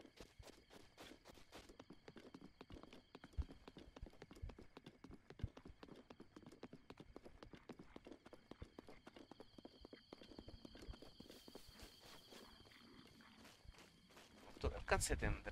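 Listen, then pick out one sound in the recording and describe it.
Quick footsteps run over grass and dirt.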